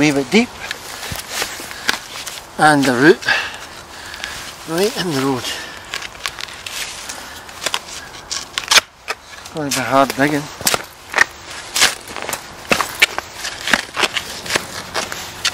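A spade digs and scrapes into soil.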